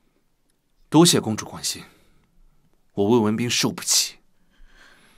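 A young man speaks calmly and firmly.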